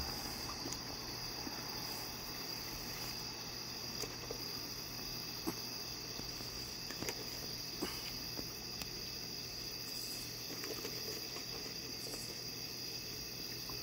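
A raccoon crunches dry pet food.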